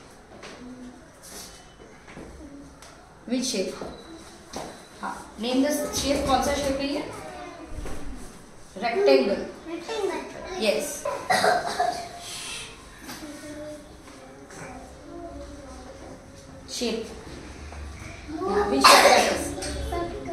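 A young boy answers in a small voice.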